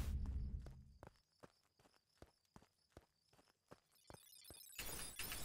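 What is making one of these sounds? Quick footsteps patter across grass.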